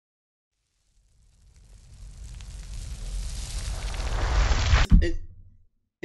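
A loud explosion roars, builds and ends in a sharp blast.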